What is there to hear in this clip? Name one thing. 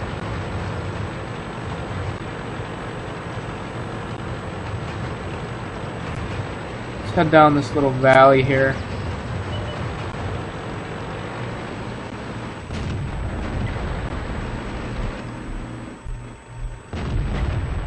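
A tank engine rumbles steadily.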